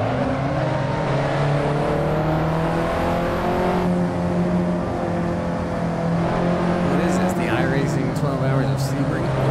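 A car engine hums steadily and shifts in pitch as the car speeds along.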